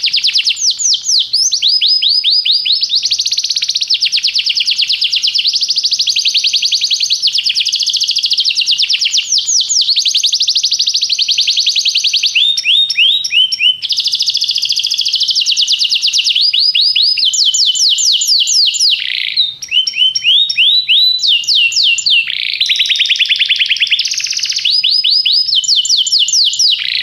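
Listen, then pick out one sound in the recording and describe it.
A canary sings close by in a long, rapid run of trills and chirps.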